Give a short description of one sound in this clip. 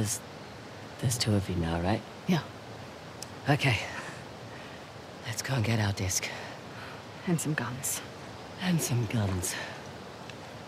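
A second young woman answers calmly.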